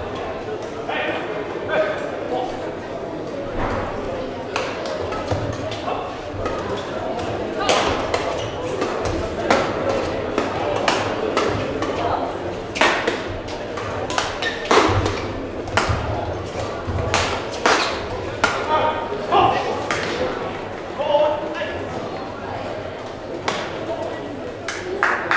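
Sneakers squeak and thud on a hall floor.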